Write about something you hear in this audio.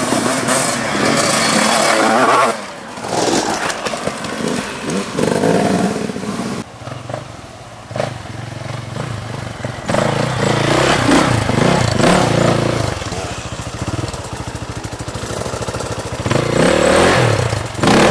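Dirt bike engines rev loudly and roar close by.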